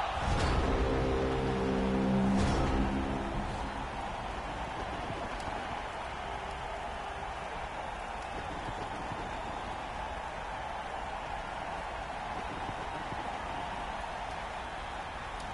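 A large crowd roars steadily in a stadium.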